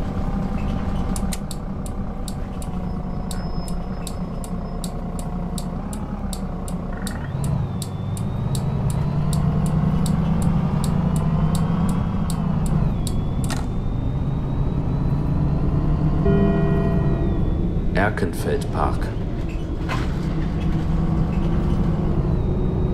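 A bus engine hums steadily and rises in pitch as the bus speeds up.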